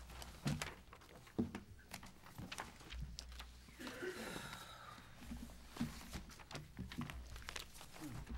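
Paper rustles as pages are shuffled.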